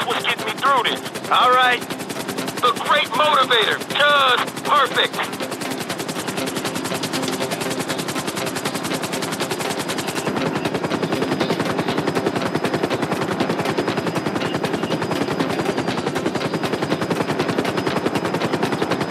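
A helicopter's rotor thumps rapidly and steadily.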